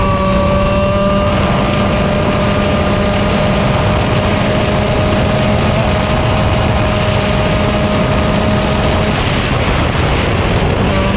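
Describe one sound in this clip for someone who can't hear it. A kart engine buzzes loudly up close, its pitch holding high and then dipping.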